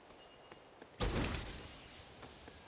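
A fiery blast whooshes suddenly.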